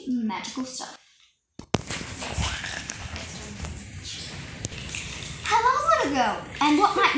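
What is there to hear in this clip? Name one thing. A young girl speaks with animation.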